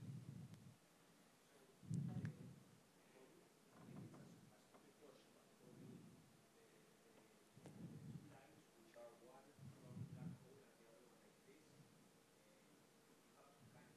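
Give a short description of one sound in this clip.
A man lectures calmly through a headset microphone, pausing often.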